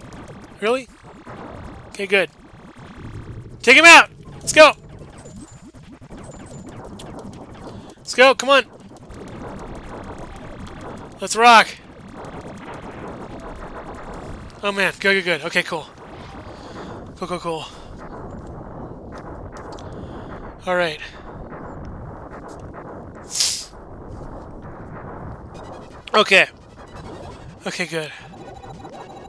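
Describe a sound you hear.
Laser blasts fire in short, rising and falling electronic bursts.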